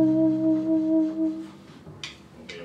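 An alto saxophone plays a sustained melody.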